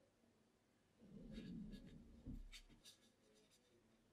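A paintbrush swishes and scrubs in a wet mixing tray.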